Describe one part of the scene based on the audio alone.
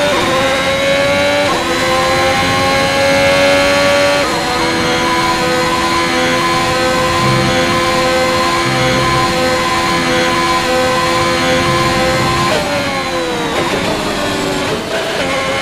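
A racing car engine screams at high revs, shifting up through the gears and then winding down as it brakes.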